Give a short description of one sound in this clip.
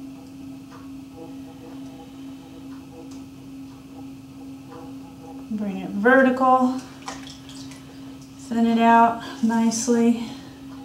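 Wet clay squishes softly under fingers.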